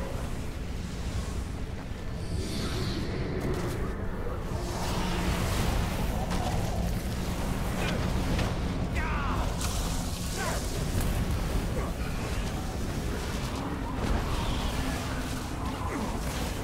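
Electric spells crackle and zap.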